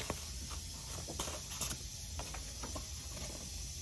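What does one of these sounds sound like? Paper cards rustle and slide as a hand moves them.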